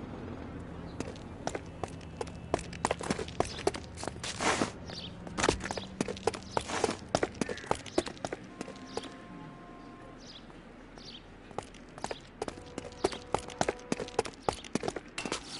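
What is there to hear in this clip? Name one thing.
Footsteps run quickly across a hard rooftop.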